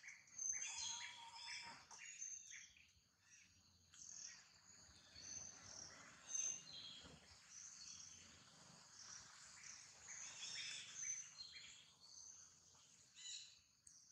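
A baby monkey squeals and whimpers close by.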